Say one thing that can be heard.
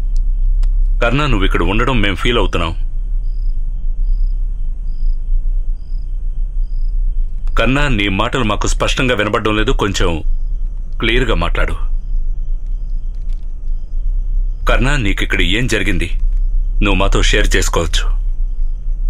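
Men speak in short, tense exchanges, close by.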